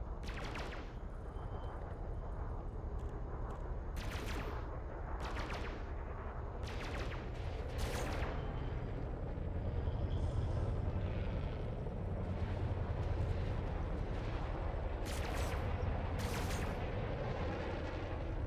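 A video game spaceship's engine hums low.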